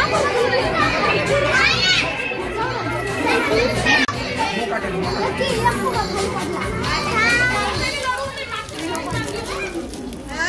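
A group of adults and children talk and cheer close by.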